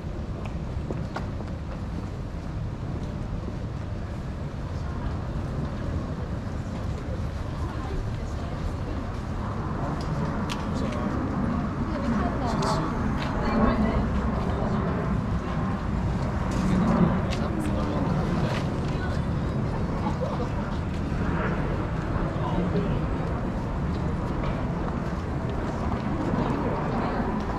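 Footsteps walk steadily along a paved street.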